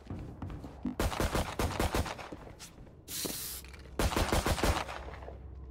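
Quick footsteps thud on hard steps.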